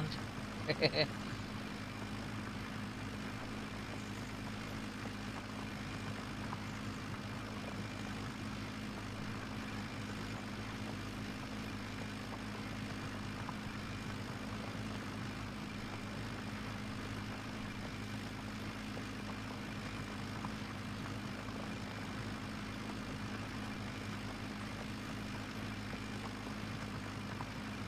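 A plough rumbles through soil behind a tractor.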